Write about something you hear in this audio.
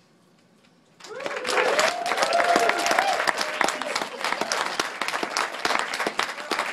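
An audience claps loudly in a hall.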